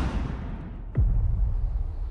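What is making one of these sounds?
A body thuds heavily onto sand.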